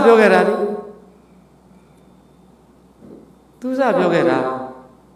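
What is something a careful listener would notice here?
A middle-aged man speaks calmly into a microphone, close by, with pauses.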